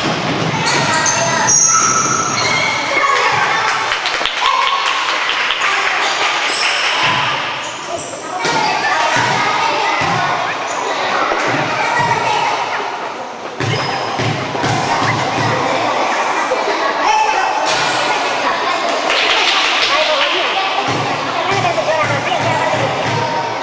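Players shout to each other across the hall.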